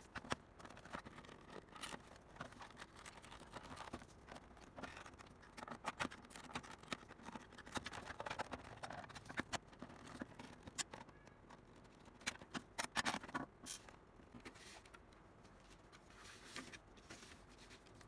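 Plastic casing knocks and clicks as hands handle it.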